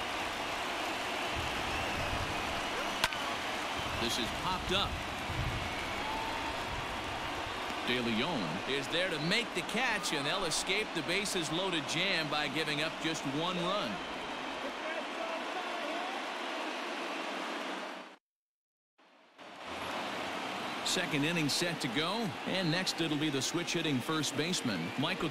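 A crowd murmurs and cheers in a large stadium.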